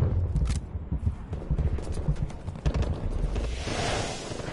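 Heavy footsteps thud on sand.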